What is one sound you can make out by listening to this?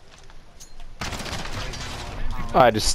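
Gunfire rattles close by.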